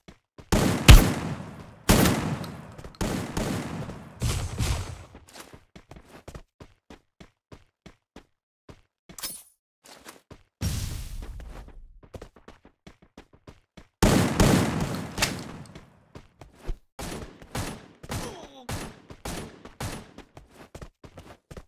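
Footsteps clatter quickly across a metal roof.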